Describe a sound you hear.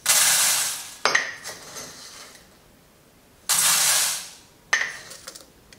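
A metal sieve clinks sharply against a hard edge.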